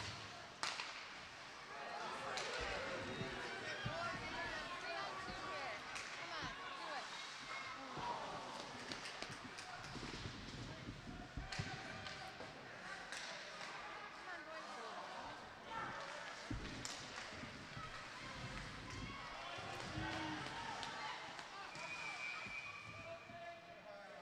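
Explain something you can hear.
A crowd murmurs in an echoing arena.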